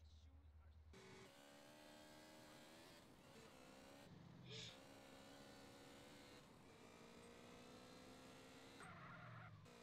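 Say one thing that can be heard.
A motorcycle engine hums steadily and shifts pitch as it rides.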